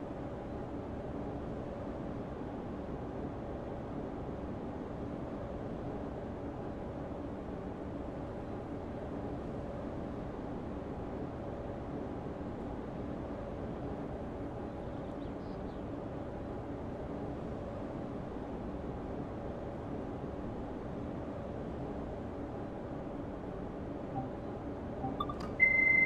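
A train's motors hum steadily while standing still.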